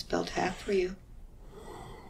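An elderly woman speaks briefly, close by.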